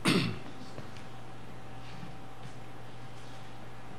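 A man's footsteps sound on a wooden floor.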